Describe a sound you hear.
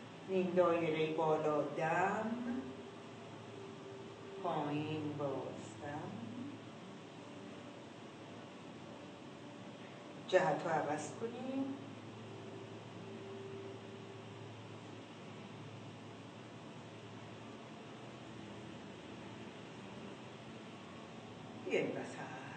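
An elderly woman speaks calmly and slowly, close by, with long pauses.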